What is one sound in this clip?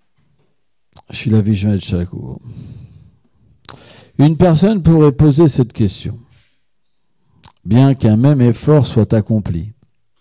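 A man reads aloud calmly into a microphone, with pauses.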